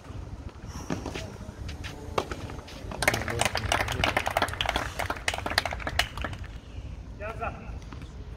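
Tennis balls are struck with sharp pops of a racket.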